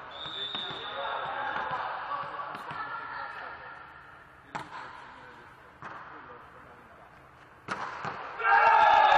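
Young men shout and call out on the court.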